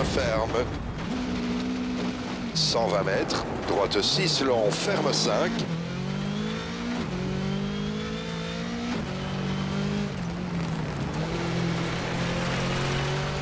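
A rally car engine revs hard, rising and falling as the gears change.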